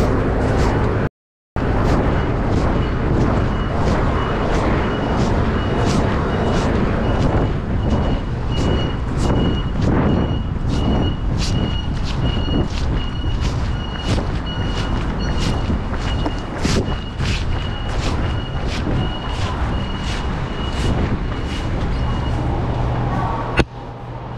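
Footsteps fall steadily while walking.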